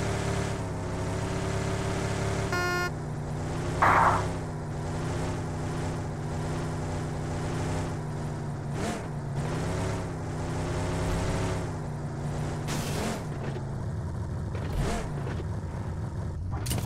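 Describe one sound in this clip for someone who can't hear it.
A car engine hums steadily and revs as the car drives over rough ground.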